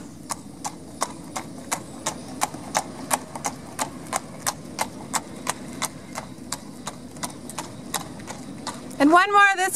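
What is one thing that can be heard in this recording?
Horse hooves clop steadily on pavement.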